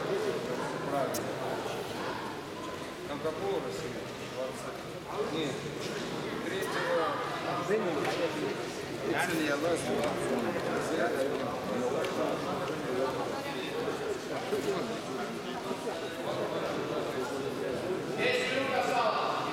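Many men talk at once in a large echoing hall.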